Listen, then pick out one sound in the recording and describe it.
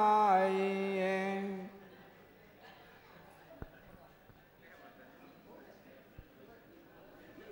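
A crowd of men and women murmurs quietly in a large room.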